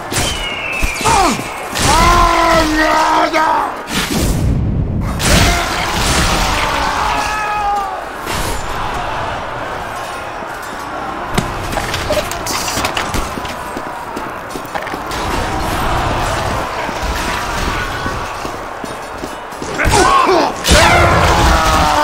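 Video game gunfire crackles and thuds.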